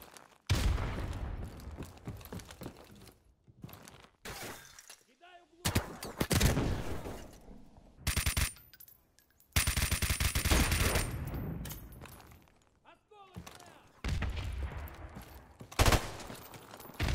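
Automatic gunfire rattles in rapid bursts, ringing out afterwards.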